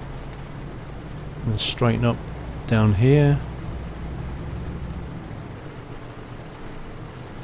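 Rain patters on a windscreen.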